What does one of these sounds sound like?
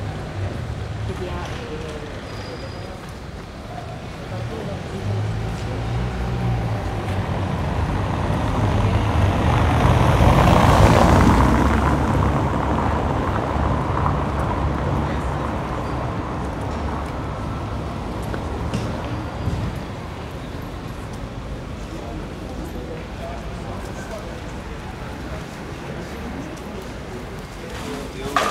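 Outdoors in a busy street, distant traffic hums steadily.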